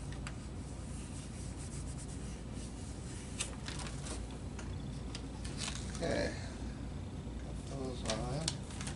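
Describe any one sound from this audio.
Paper rustles and slides as hands handle a cut-out.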